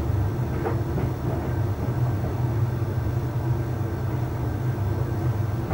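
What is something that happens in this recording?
Clothes tumble and swish softly inside a dryer drum.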